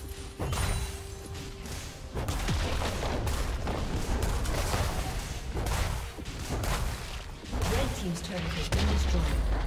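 Game spells and weapon hits clash rapidly in a battle.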